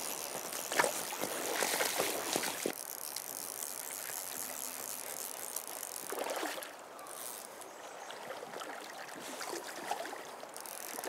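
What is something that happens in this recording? A river flows and ripples steadily outdoors.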